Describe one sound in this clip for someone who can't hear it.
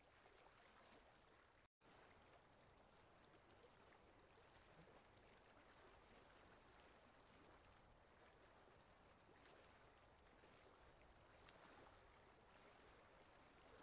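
Fabric rustles softly as fingers fold it.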